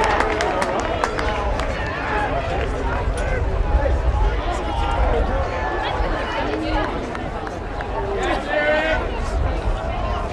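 Players shout on an outdoor field.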